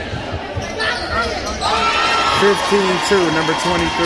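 Sneakers squeak on a hardwood floor.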